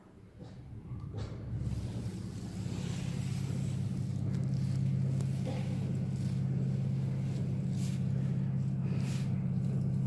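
A passenger lift motor hums as the car travels along the shaft.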